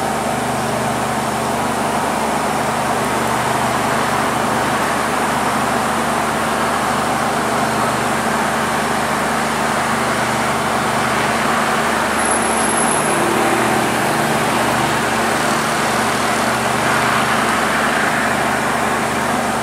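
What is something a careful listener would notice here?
A diesel train engine rumbles steadily in the distance.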